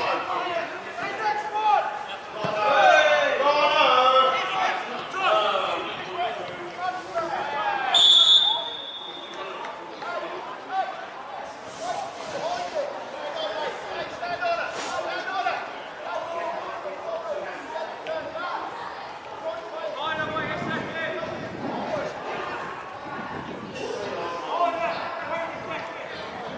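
Players shout and call to each other across an outdoor pitch.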